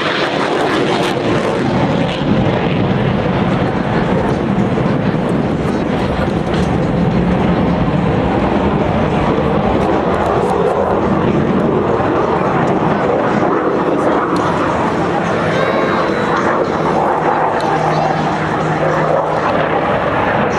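A jet plane roars loudly overhead.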